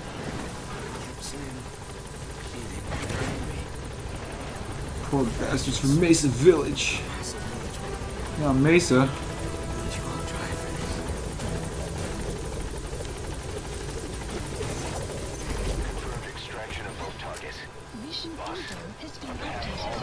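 A helicopter's rotor thrums steadily overhead.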